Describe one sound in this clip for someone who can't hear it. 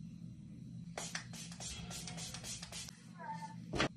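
A spray bottle hisses in quick bursts.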